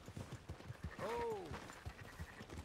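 A sheep bleats once nearby.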